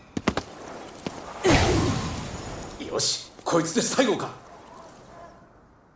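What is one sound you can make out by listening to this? Magic blasts crackle and whoosh in quick bursts.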